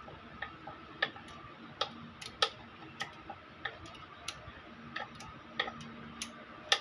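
A ratchet wrench clicks in quick, sharp bursts against metal.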